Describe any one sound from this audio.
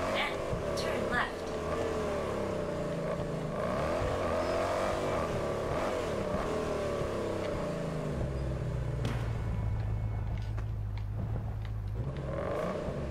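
A sports car engine roars, revving up and down.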